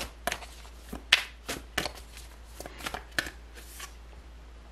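Playing cards flick and slap together as a deck is shuffled.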